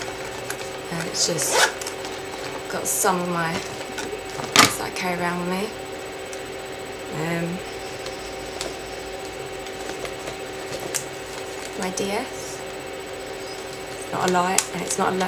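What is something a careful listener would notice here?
A young woman talks calmly close to a microphone.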